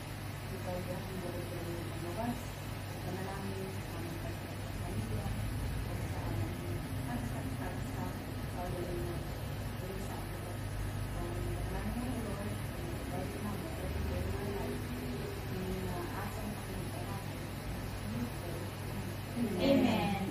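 A woman speaks calmly at a table nearby.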